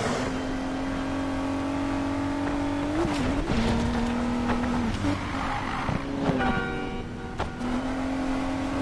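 A car engine roars steadily at high speed, its pitch shifting with gear changes.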